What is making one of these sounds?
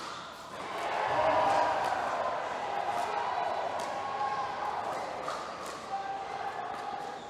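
A crowd cheers and applauds in a large echoing hall.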